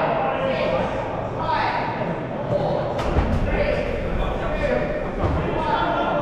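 Young men and women shout and call out across a large echoing hall.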